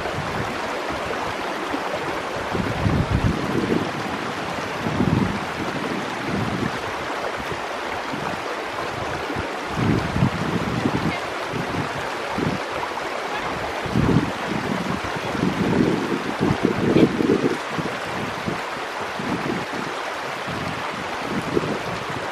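A stream rushes and splashes over rocks nearby.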